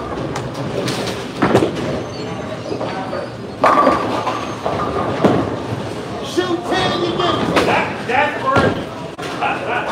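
Pins crash and clatter as balls strike them.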